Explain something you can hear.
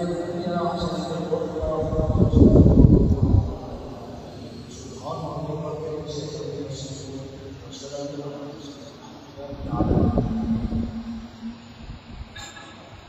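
An elderly man chants into a microphone, heard through loudspeakers in a large echoing hall.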